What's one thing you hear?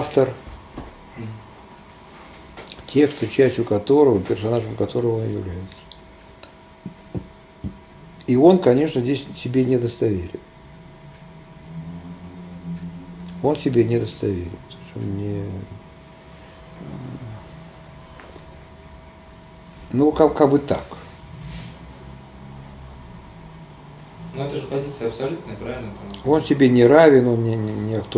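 An elderly man speaks calmly at a slight distance, with pauses.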